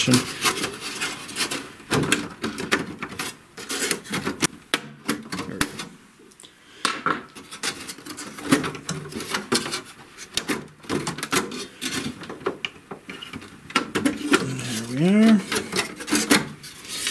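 Fingers tap and click against a thin metal panel.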